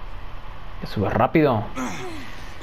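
A man grunts with effort while lifting.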